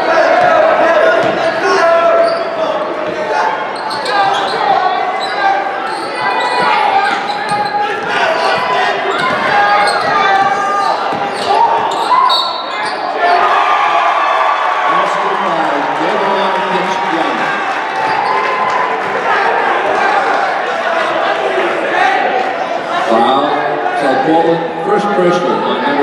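A crowd cheers and chatters in a large echoing gym.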